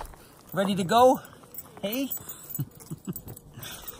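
A dog snorts and pants.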